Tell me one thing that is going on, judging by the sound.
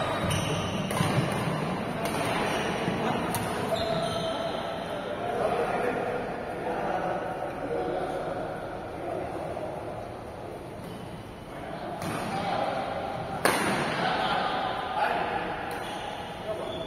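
Shoes squeak and scuff on a hard court floor.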